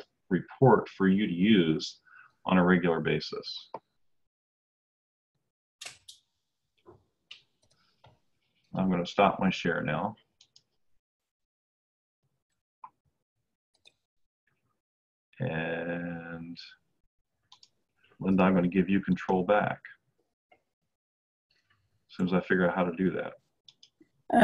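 A middle-aged man speaks calmly in pauses through an online call.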